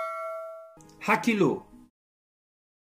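A man speaks toward the listener.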